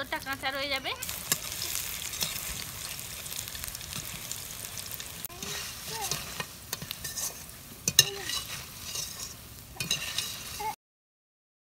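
Oil sizzles and crackles as food fries in a pan.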